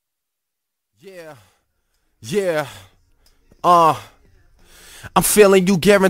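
A young man sings in short phrases.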